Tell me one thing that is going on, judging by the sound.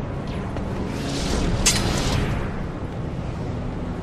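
A sword clatters onto a hard floor.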